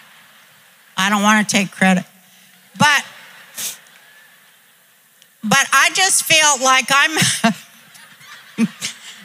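An elderly woman speaks with animation through a microphone, heard through loudspeakers in a large hall.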